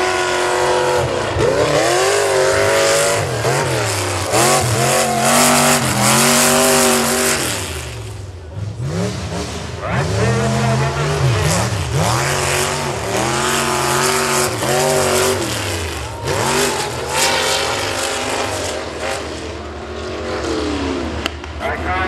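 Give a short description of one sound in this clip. A truck engine roars loudly, revving up and down again and again.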